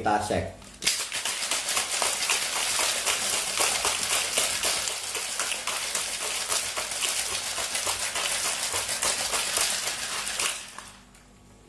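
Ice rattles hard inside a shaker as a drink is shaken.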